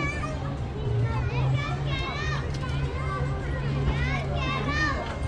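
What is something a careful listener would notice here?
A crowd of men and women chat quietly outdoors.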